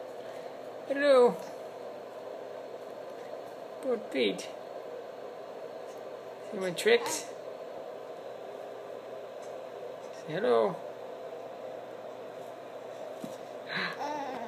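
A baby coos and gurgles close by.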